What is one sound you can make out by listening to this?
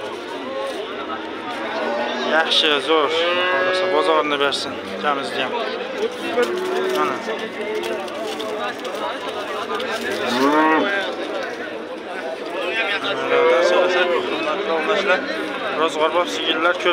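Several men talk nearby, outdoors.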